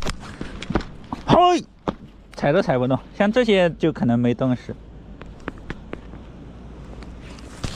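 Footsteps crunch on ice and gravel.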